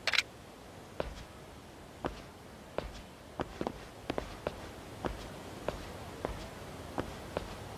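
Footsteps tap on stone paving at a steady walking pace.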